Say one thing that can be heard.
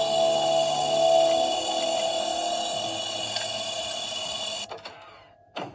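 Eerie, droning game music plays from a tablet speaker and then cuts off.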